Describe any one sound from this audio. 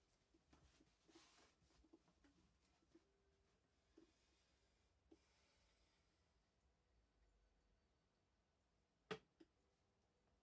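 Instrument keys click and clack softly.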